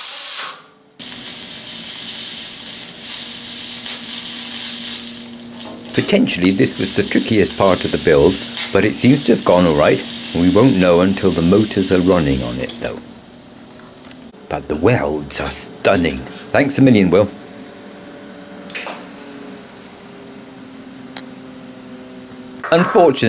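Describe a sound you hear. An arc welder crackles and hisses steadily.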